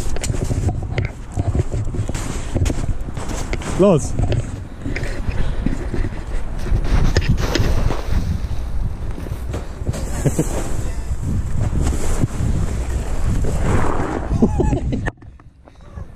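A sled scrapes and rumbles fast over packed snow.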